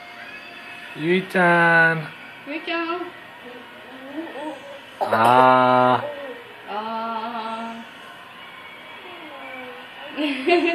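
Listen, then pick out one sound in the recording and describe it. A little girl sings loudly in short bursts close by.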